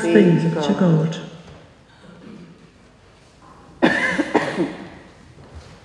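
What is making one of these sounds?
An elderly woman speaks calmly into a microphone in an echoing hall.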